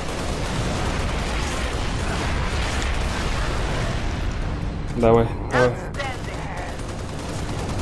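A gun fires rapid bursts.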